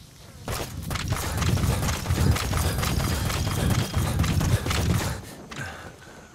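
Footsteps thud quickly on dirt.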